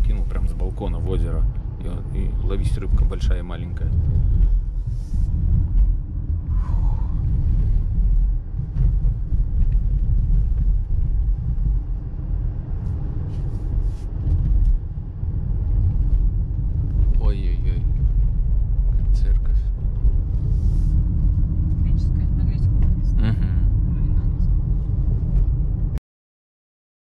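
A car drives along with a steady low rumble from inside.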